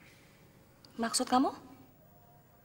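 A young woman speaks sharply close by.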